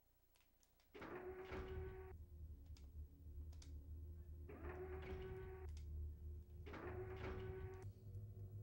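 A game's heavy droning music plays.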